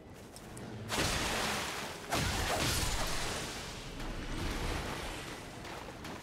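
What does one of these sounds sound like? A sword slashes and strikes in a fight.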